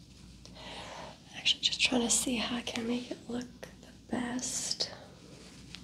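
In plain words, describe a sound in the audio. A young woman speaks briefly and softly close by.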